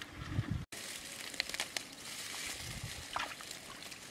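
Water splashes as hands scoop it from a puddle.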